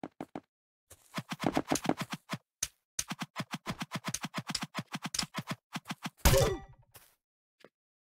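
A sword strikes a player with sharp thuds.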